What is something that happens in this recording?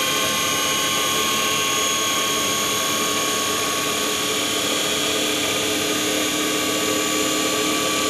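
An electric motor hums and whines steadily.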